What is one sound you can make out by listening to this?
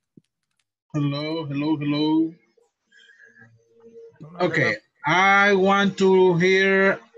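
Several men and women sing together over an online call.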